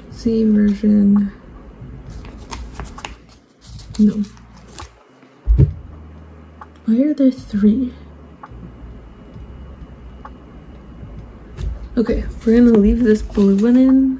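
Plastic sleeves in a binder crinkle and rustle under a hand.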